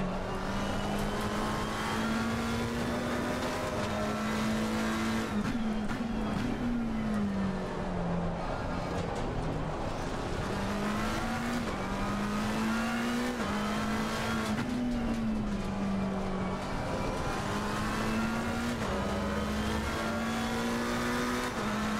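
A racing car engine roars, rising and falling in pitch as it shifts gears.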